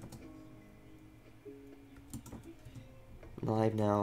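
A handheld game console plays soft music tones through a small speaker.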